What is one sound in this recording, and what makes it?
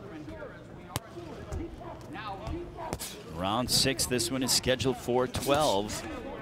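Boxing gloves land with sharp thuds.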